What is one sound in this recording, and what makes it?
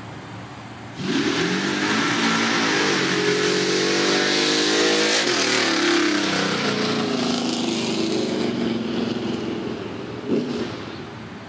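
A truck engine roars loudly as the truck races past close by, then fades into the distance.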